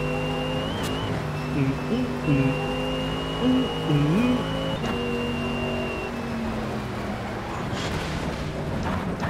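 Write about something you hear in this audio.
A race car engine hums steadily and shifts pitch as it changes gear.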